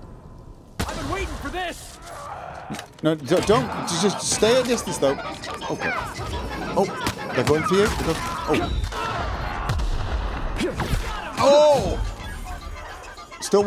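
Enemies fire energy weapons in a fast gunfight.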